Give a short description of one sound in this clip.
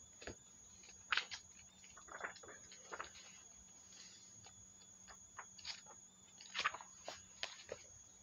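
Book pages rustle as they are flipped.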